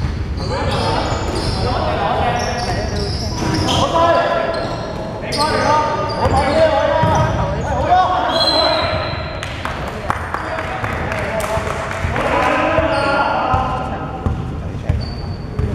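Men shout and call out to each other in a large echoing gym.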